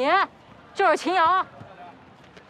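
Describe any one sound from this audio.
A young woman shouts loudly nearby.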